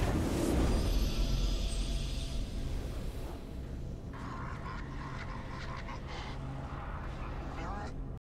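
A triumphant fanfare plays.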